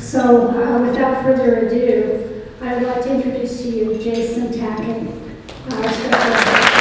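A woman speaks calmly into a microphone over loudspeakers in a large room.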